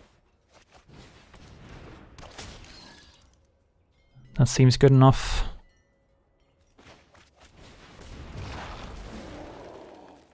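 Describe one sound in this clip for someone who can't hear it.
Soft magical whooshing effects sound.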